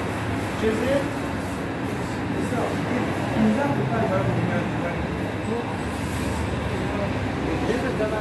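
Hands pat and press soft dough.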